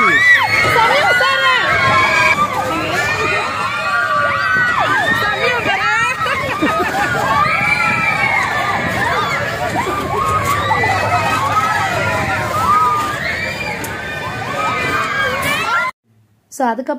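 Children and women scream and shout excitedly on a spinning ride.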